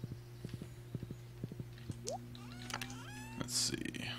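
A menu opens with a soft click.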